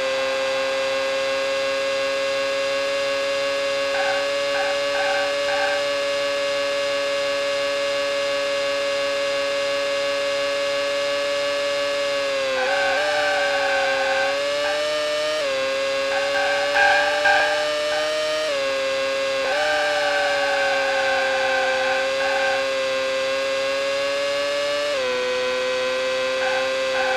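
A racing car engine whines at a high, steady pitch, dipping briefly at each gear change.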